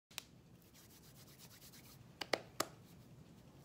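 Hands clap lightly together a few times.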